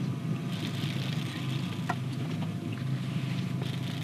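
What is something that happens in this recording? A fishing reel clicks as it is cranked.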